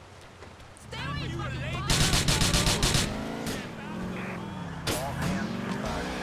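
A car engine roars and revs as the car speeds off.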